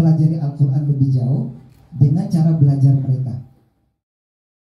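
A man speaks with animation through a microphone and loudspeakers.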